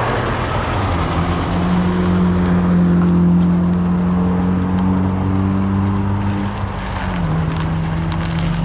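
A classic American car engine rumbles as the car rolls slowly past.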